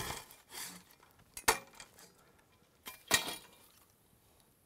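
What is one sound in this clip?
A hand saw cuts through a log.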